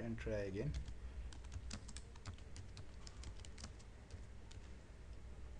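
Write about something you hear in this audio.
Computer keys click as someone types.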